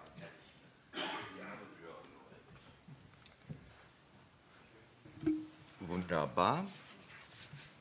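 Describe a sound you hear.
A man speaks calmly into a microphone in a room.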